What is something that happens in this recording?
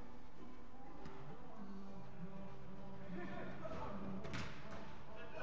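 A football thuds as it is kicked in an echoing hall.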